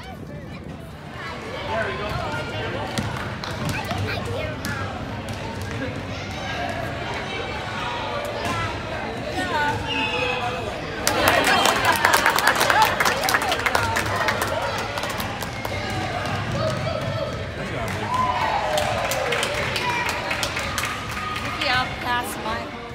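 Young children chatter and shout in a large echoing gym.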